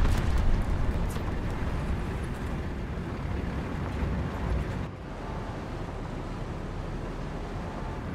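A tank engine rumbles loudly.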